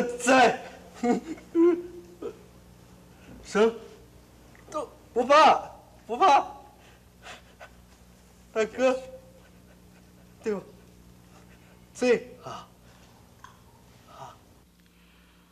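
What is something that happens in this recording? A man speaks emotionally in a tearful, pleading voice close by.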